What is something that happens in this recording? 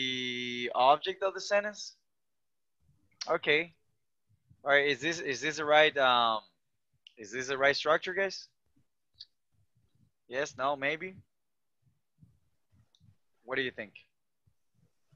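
A man explains calmly over an online call, pausing between phrases.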